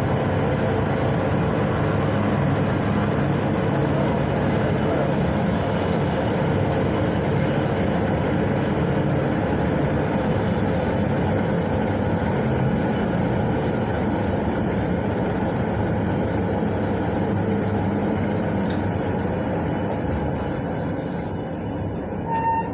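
The bus body rattles and vibrates over the road.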